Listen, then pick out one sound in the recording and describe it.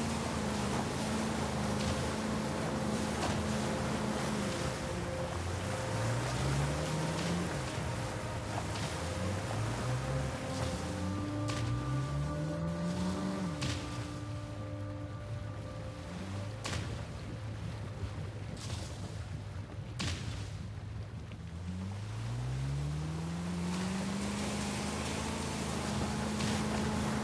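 Outboard motors roar and rev up and down.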